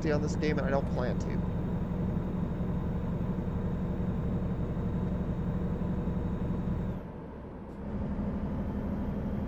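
A truck engine drones steadily at cruising speed.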